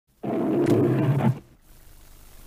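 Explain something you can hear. A lion roars.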